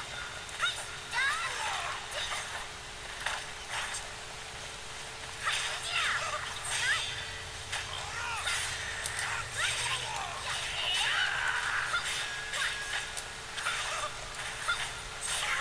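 Swords clash and slash in quick, sharp strikes.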